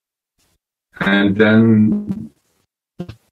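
An elderly man speaks through an online call.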